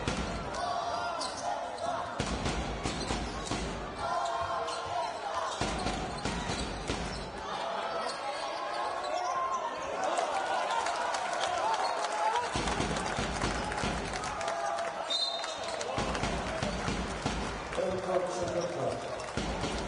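A basketball bounces on a hard wooden floor.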